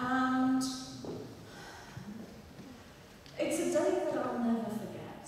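A woman speaks with animation through a microphone in a large echoing hall.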